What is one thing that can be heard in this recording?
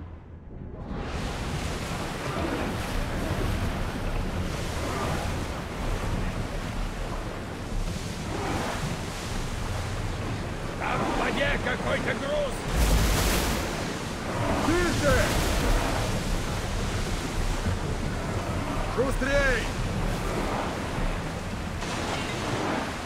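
Waves crash and churn around a wooden ship.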